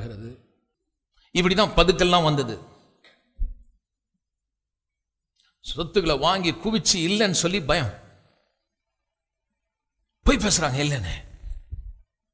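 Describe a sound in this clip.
An elderly man preaches with emphasis into a microphone, in bursts with long pauses.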